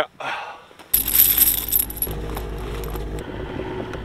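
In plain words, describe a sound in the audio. Metal tire chains clink and rattle.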